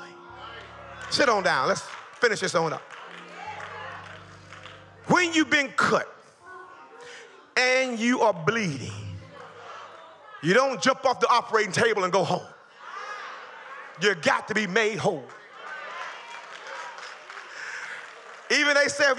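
A man preaches with passion into a microphone, his voice loud over loudspeakers.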